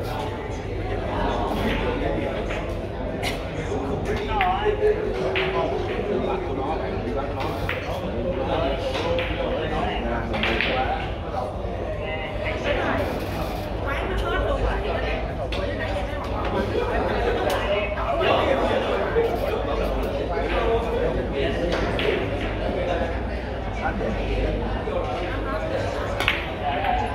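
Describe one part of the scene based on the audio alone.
Men murmur and chat in the background of a large room.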